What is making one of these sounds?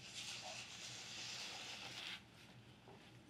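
Cardboard scrapes and rustles against a work surface.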